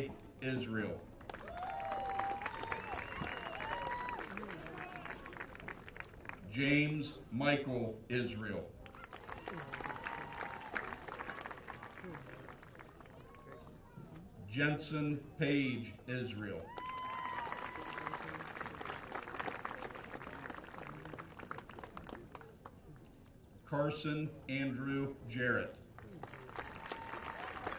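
A crowd cheers and claps after each name.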